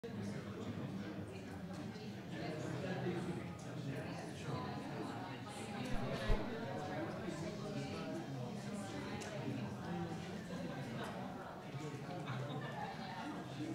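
A seated crowd murmurs and chatters quietly throughout.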